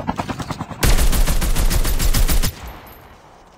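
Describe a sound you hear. Rapid gunfire rattles in a loud burst.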